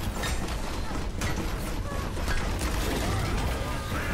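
A hammer clangs on metal.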